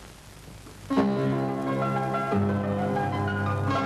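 A man plays a piano.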